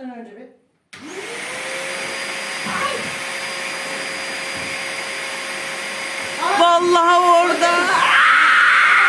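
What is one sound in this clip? A vacuum cleaner starts up and hums steadily.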